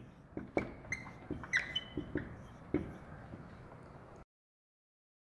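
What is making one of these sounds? A marker squeaks and taps on a whiteboard.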